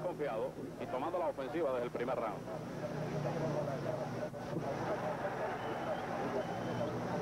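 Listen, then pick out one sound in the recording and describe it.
A crowd murmurs in the distance.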